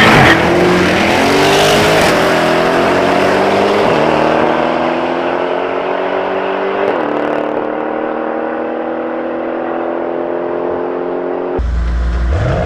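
A car engine roars as it accelerates hard away, shifting up through the gears and fading into the distance.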